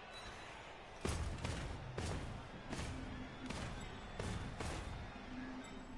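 Heavy thuds and clanks ring out as armoured players crash into each other.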